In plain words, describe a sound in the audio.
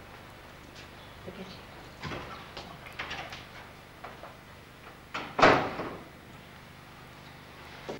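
A woman speaks warmly in greeting.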